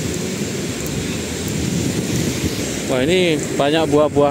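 Waves wash onto the shore nearby.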